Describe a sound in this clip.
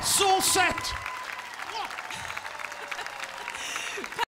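A large crowd claps and applauds outdoors.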